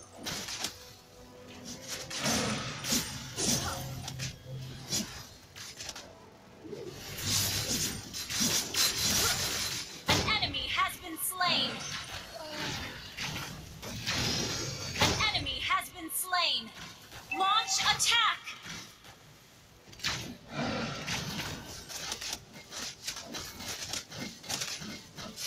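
Fantasy battle effects crackle and clash with magic blasts.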